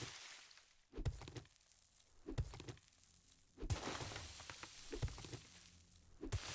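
A stone tool thuds repeatedly into the ground.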